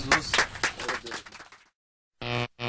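A small group of people clap their hands outdoors.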